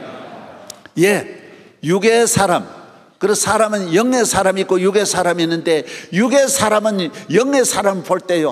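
A man sings loudly through loudspeakers in a large echoing hall.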